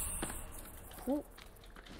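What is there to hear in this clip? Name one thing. A young woman makes a brief vocal sound close to a microphone.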